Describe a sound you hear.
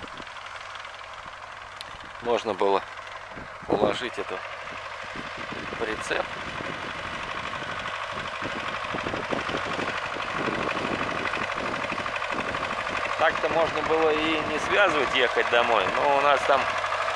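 A tractor engine rumbles steadily and grows louder as it comes closer.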